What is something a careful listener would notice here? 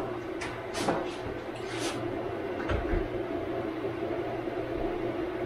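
Many printer motors hum and whir steadily.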